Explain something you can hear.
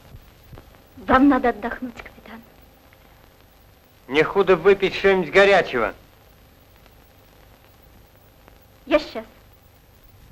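A young woman speaks with feeling.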